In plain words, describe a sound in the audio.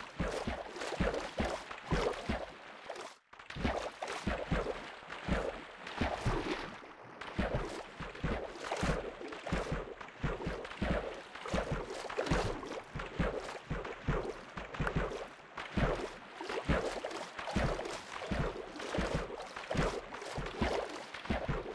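Water splashes as a swimmer paddles at the surface.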